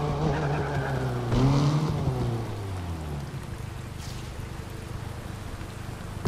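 A car engine slows down to an idle.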